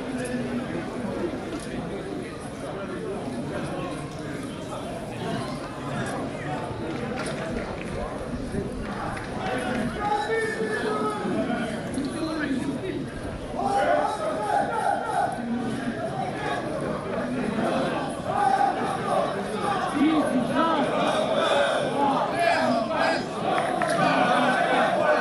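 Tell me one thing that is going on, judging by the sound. Men on a field shout and call to one another outdoors.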